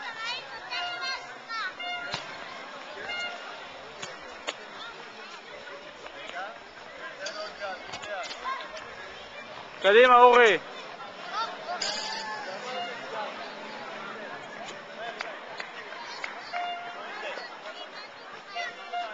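A ball is tapped and kicked on a hard court.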